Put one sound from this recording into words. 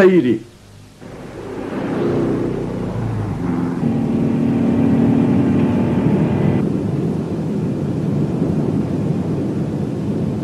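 A car engine starts and rumbles steadily.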